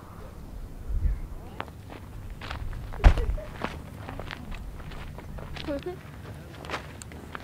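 Footsteps crunch on gravel outdoors.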